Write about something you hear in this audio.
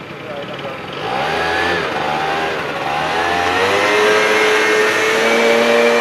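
A motorbike engine approaches and revs, its pitch rising and falling.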